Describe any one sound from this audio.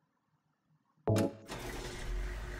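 A heavy switch clunks.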